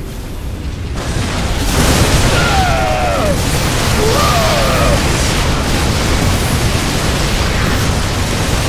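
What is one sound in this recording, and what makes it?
Laser weapons fire and crackle in rapid bursts.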